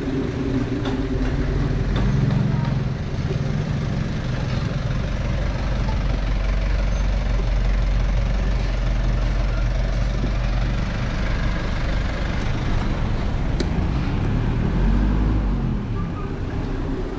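A van's engine rumbles close by as it moves slowly.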